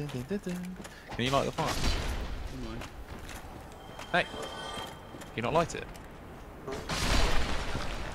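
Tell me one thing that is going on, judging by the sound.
Swords swing and clang in a fight.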